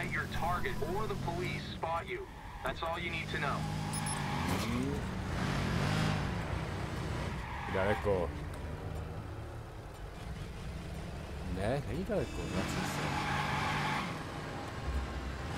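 A car engine hums and revs as the car speeds along.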